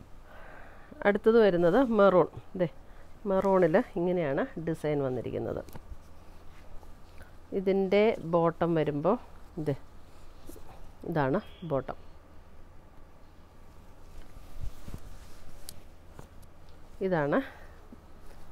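A woman speaks calmly into a close microphone.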